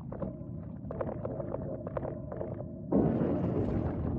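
A huge creature's wet flesh squelches as it stirs and turns.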